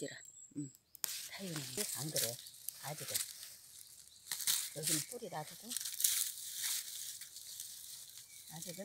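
Dry leaves and plants rustle as they are handled.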